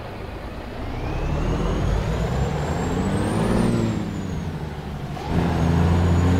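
A truck engine revs up and rises in pitch as the truck pulls away.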